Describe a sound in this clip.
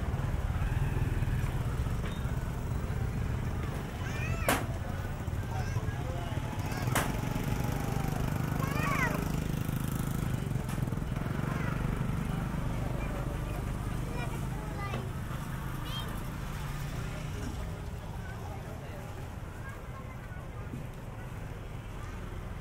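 Motorbike engines rumble and putter close by.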